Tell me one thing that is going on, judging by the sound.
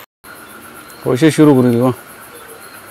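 A man speaks briefly close by.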